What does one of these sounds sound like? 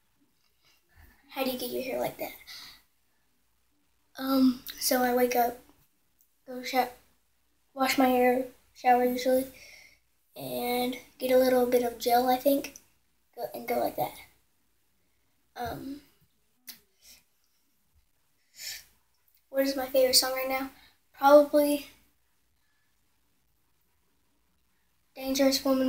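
A young boy speaks with animation close to the microphone, in short bursts.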